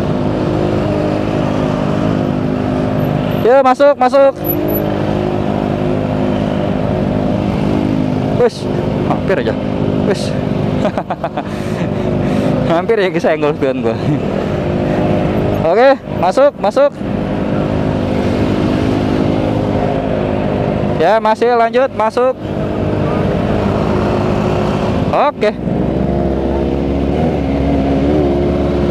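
Motorcycle engines idle with a steady low rumble close by.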